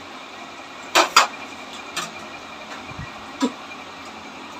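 Metal utensils clink and clatter.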